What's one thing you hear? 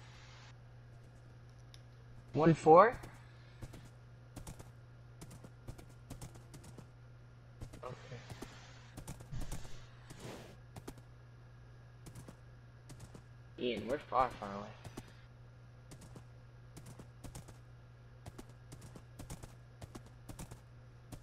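A horse's hooves clop steadily on soft ground.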